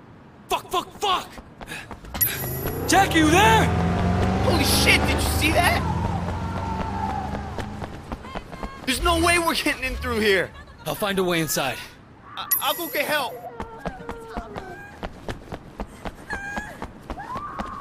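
Quick footsteps run on hard pavement.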